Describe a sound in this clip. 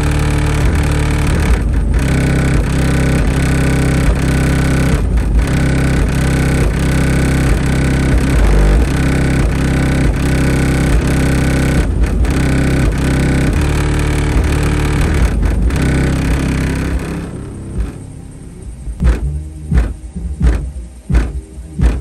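Loud music with deep, booming bass blasts from a car's speakers.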